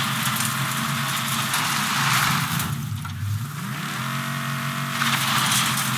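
Branches and leaves scrape against a car.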